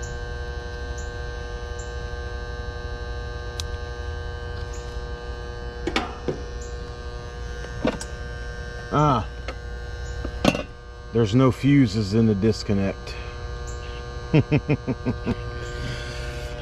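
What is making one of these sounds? An outdoor air conditioning unit hums steadily.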